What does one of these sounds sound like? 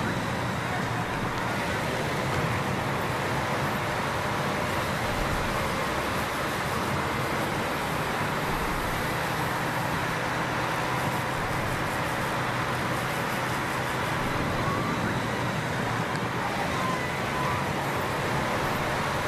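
Racing bicycles whir along a road.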